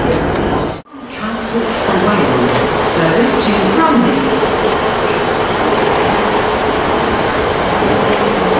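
A diesel train idles at a platform with a low, steady engine hum.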